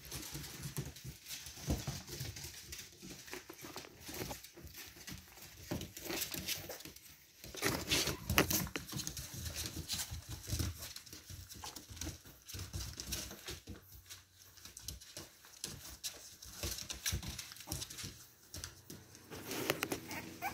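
Puppy paws patter and scrabble on a wooden floor.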